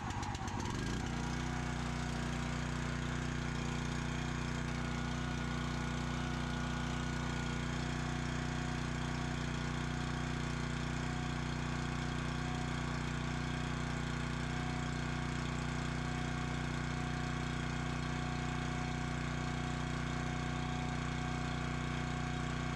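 A small petrol engine runs with a steady, loud drone up close.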